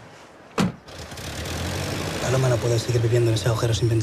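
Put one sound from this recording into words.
A car engine runs as the car pulls away.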